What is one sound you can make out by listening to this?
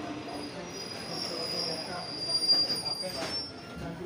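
Train brakes squeal high and shrill.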